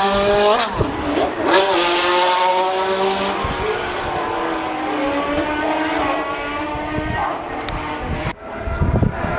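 A racing car's engine roars loudly, its pitch rising and falling as it shifts gears.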